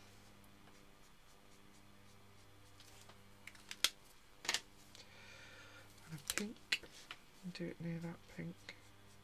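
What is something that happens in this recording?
A marker pen scratches softly across paper.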